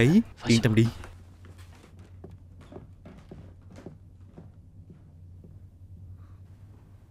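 Footsteps walk slowly across a floor.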